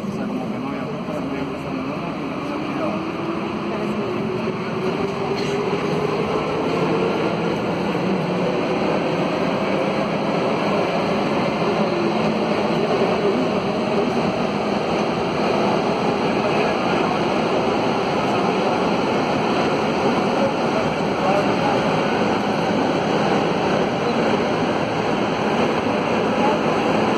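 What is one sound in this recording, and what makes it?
Train wheels clatter on the rails.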